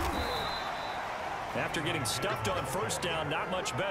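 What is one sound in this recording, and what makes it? Football players collide with thuds in a tackle.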